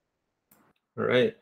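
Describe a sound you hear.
A young man speaks briefly through an online call microphone.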